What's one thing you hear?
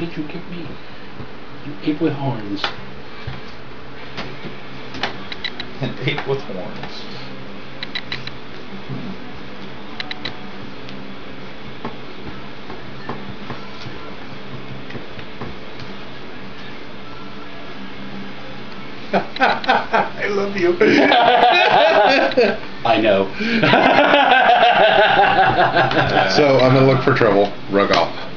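Playing cards rustle and click in a man's hands.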